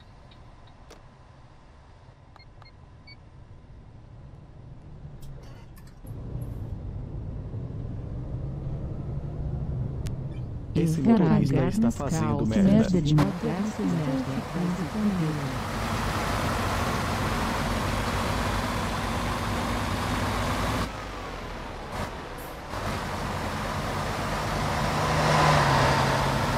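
A bus engine hums steadily and grows louder.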